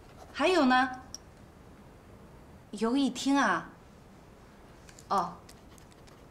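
A middle-aged woman speaks on a phone in short, annoyed phrases.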